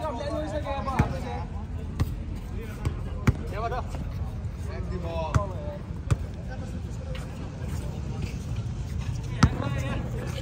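A basketball bounces sharply on a hard outdoor court.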